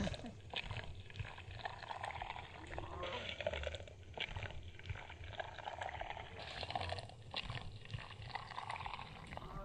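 Water pours into a plastic cup.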